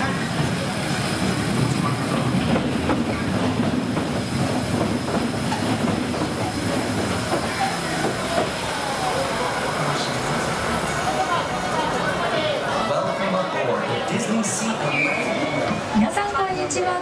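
A tram rumbles and clatters along its rails.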